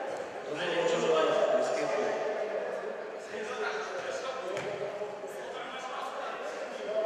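Young men and boys chatter in the background of a large echoing hall.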